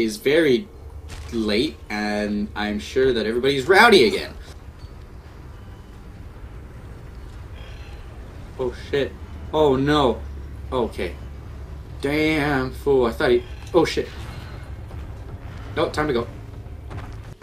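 A young man talks with animation into a microphone, close by.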